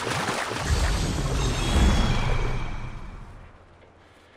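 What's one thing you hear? Water splashes and churns as a crocodile swims.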